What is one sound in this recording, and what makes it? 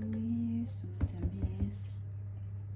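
A metal can knocks against a plastic bowl.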